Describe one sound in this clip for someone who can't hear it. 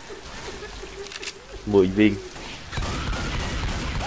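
A shotgun clicks and clacks as it is loaded.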